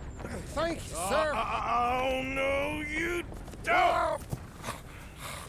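A middle-aged man cries out in protest, close by.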